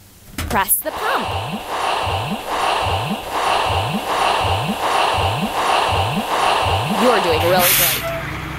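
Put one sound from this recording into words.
Fuel glugs rhythmically into a tank.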